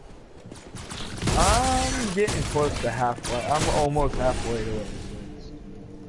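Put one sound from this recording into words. Video game gunfire crackles in quick bursts.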